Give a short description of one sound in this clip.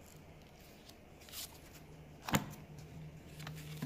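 A stiff paper card rustles and taps against the pages of a book, close by.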